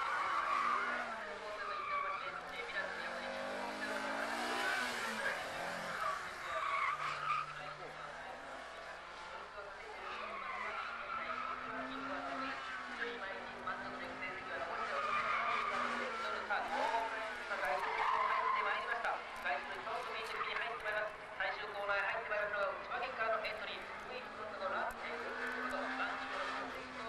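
A race car engine revs high and drops as the car slides through corners.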